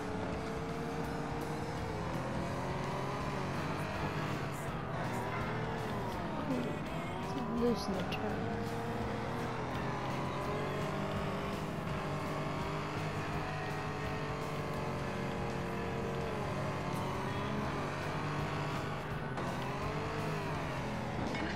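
A racing car engine roars steadily, its pitch rising and falling with gear changes.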